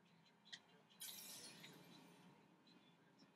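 A game sound effect whooshes from a television speaker.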